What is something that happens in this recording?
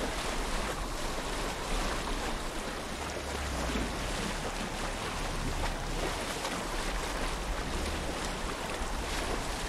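An oar swishes through water.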